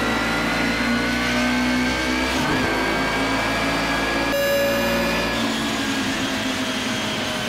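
Several other racing car engines drone close ahead.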